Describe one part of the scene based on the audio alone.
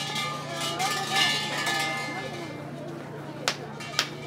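Large hanging bells jingle and rattle as their ropes are shaken.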